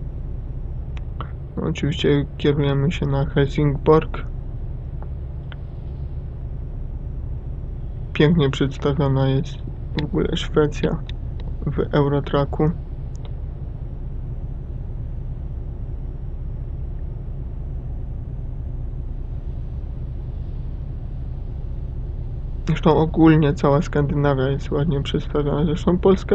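A heavy truck's diesel engine hums, cruising on a highway.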